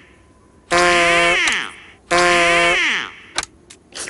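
A rubber toy duck squeaks loudly, twice in a row.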